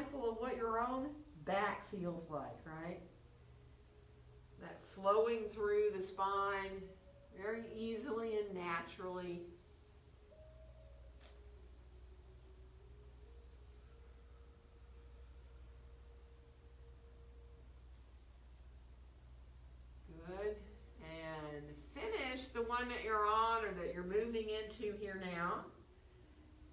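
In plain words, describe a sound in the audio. A woman speaks calmly and slowly, close by.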